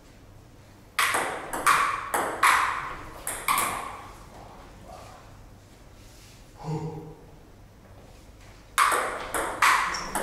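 A ping pong ball clicks back and forth off paddles and a table in an echoing room.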